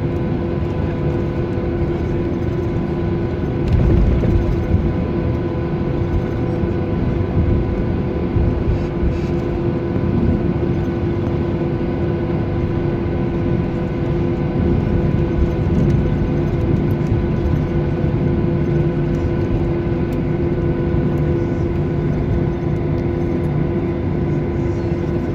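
Jet engines hum and whine steadily from inside an aircraft cabin.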